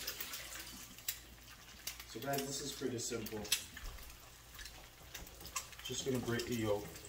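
Eggs sizzle in a hot frying pan.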